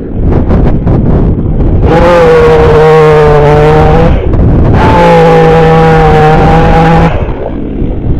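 A chainsaw revs loudly and cuts through wood.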